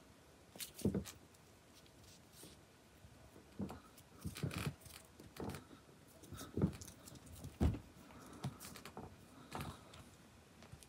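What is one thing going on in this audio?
A cat's paws thump and scuffle on carpet as it pounces at a toy.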